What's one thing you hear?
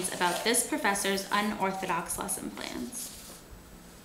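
A young woman reads aloud calmly, close by.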